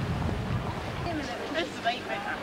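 Young women chatter and laugh nearby.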